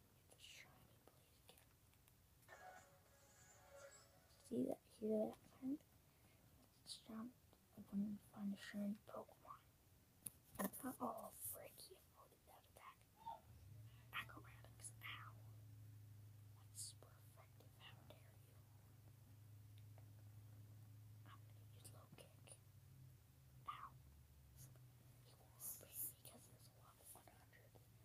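A young boy talks quietly and close by, in short bursts.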